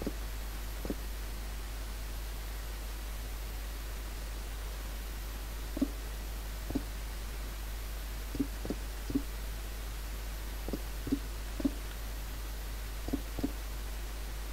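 Footsteps tap irregularly on stone.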